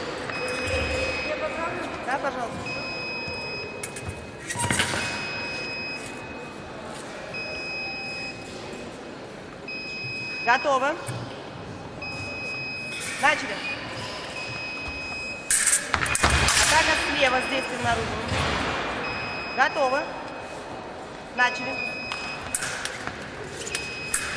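Fencers' shoes squeak and thud on a hard floor.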